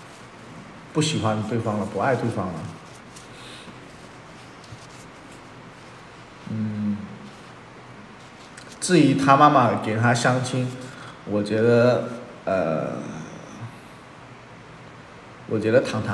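A young man talks calmly and close to a microphone, in short bursts with pauses.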